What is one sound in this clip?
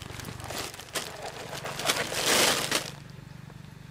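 Plastic candy packets tumble out of a cardboard box onto grass.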